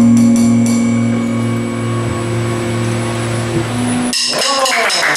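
A rock band's electric guitars and bass ring out on a held final chord.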